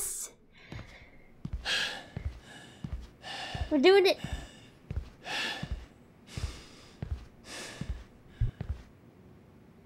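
A man pants heavily, out of breath.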